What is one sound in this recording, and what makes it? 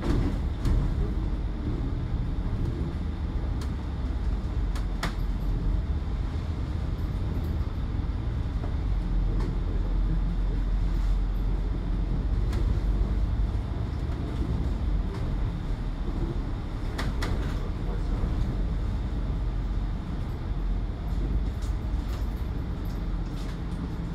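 Rattles and clicks come from inside the bus now and then.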